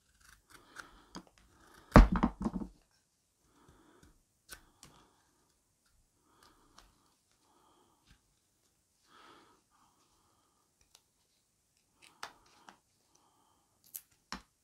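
A knife shaves thin curls from wood in short scraping strokes.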